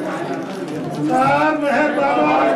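A young boy talks into a microphone over a loudspeaker.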